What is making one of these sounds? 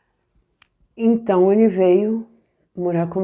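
A middle-aged woman speaks calmly and close up into a microphone.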